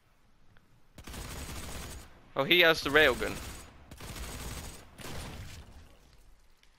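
Heavy gunfire blasts in rapid bursts.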